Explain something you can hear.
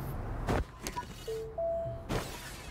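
Short electronic beeps chime as a menu opens.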